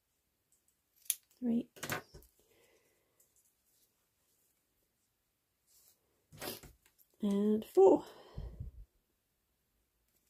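Scissors snip through ribbon.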